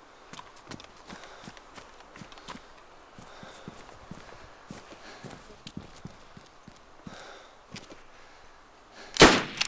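Footsteps tread lightly on hard ground.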